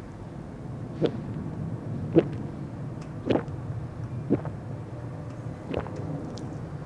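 A man gulps a drink in loud swallows.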